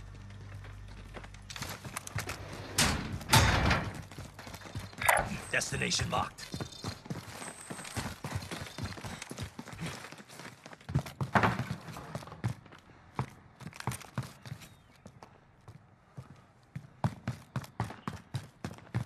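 Footsteps thud quickly across hard floors.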